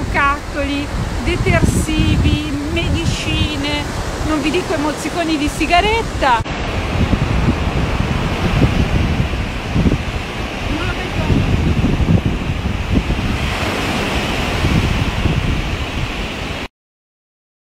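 Sea waves break and wash onto a beach.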